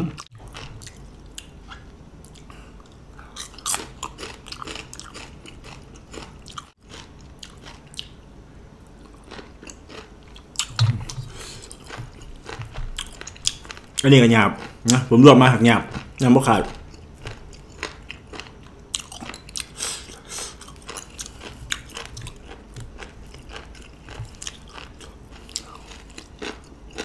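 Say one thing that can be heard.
A man chews food noisily with wet smacking sounds, close to the microphone.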